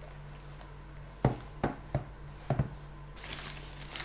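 A small device is set down on a wooden table with a few knocks.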